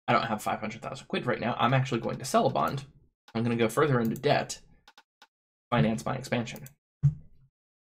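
A man speaks with animation, close to a headset microphone.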